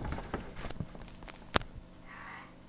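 A phone knocks and rattles as it is handled close by.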